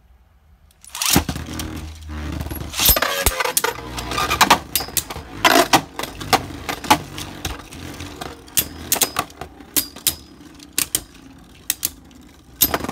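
A spinning top whirs and rattles across a plastic dish.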